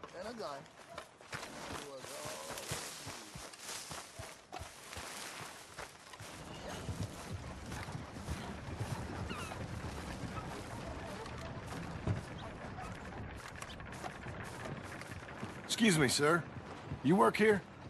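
A man walks with footsteps on grass and dirt.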